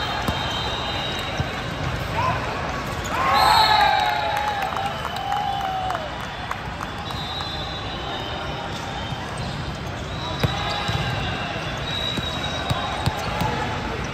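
A volleyball thuds as it is hit.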